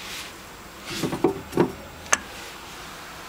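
A stoneware jug knocks on a wooden shelf.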